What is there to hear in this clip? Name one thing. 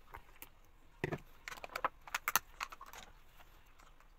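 A plastic lid clicks and snaps onto a jar.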